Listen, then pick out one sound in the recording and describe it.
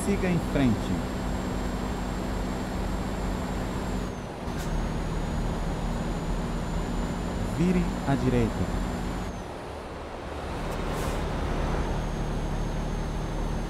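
A diesel tractor-trailer engine drones while cruising, dipping briefly between gears.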